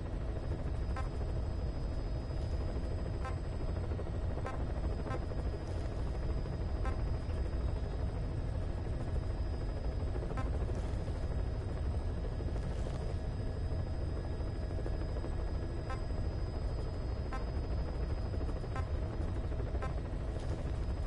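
Soft electronic menu blips tick as a selection moves through a list.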